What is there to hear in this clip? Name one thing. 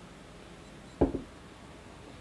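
A cup is set down with a knock.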